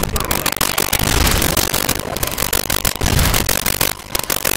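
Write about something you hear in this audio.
Heavy gunshots boom several times.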